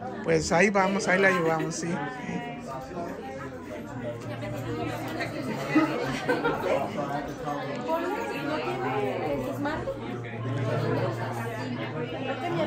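Many people chatter around.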